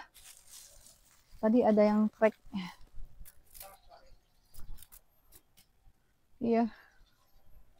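Leaves rustle on a tree.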